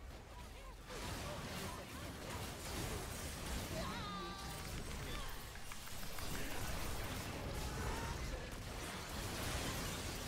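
Video game battle sounds play softly.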